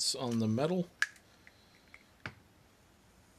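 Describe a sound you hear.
A plastic paint pot lid snaps open with a sharp click.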